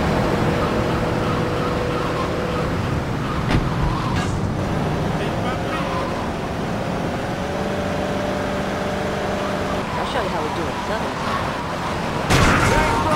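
A car engine hums as the car drives along a road.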